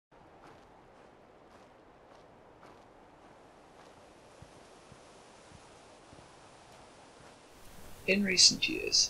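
Footsteps crunch softly on dirt.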